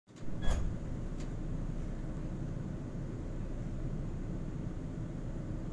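A subway train rumbles steadily as it pulls slowly through a station.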